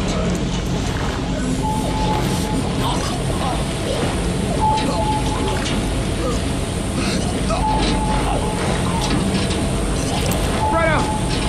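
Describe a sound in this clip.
Footsteps scrape on concrete at a steady walking pace.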